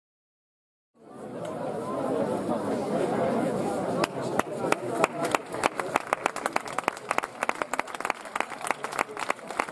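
A large audience applauds in a big echoing space.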